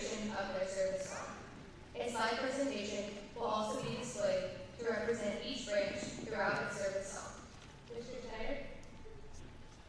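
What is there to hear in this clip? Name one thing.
A young woman speaks calmly into a microphone over a loudspeaker in a large echoing hall.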